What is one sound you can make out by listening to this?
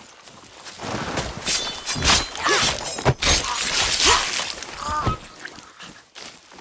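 A man grunts loudly up close.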